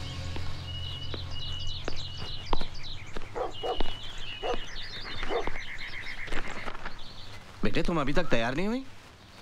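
Footsteps tread slowly down wooden stairs.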